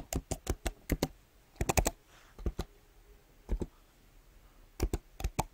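Keyboard keys click in quick bursts of typing.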